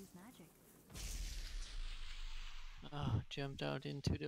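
A magic blast whooshes loudly.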